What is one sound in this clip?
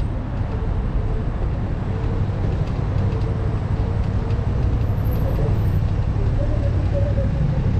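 Footsteps walk along a pavement.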